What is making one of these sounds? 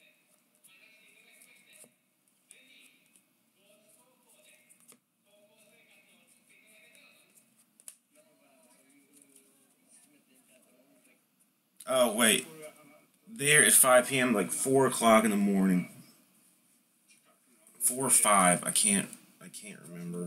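Trading cards flick and rustle as a hand shuffles through them.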